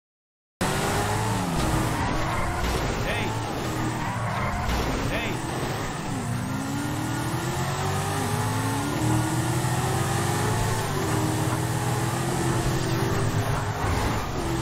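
A car engine revs up and down over and over.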